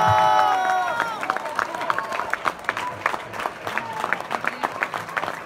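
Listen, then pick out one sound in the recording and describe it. Hands clap close by, fast and steady.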